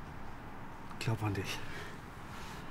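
A middle-aged man speaks quietly and closely.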